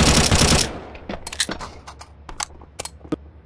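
A rifle is reloaded with sharp metallic clicks.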